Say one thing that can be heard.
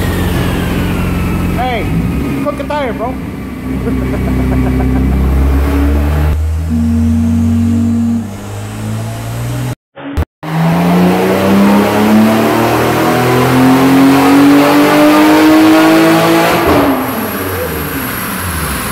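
A sports car engine roars loudly, shifting through gears and climbing steadily in pitch before easing off.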